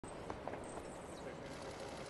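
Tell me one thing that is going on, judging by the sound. Shoes click on a hard floor in a large hall.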